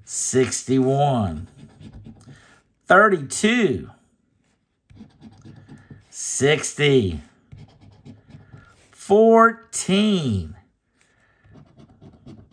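A coin scratches across a card.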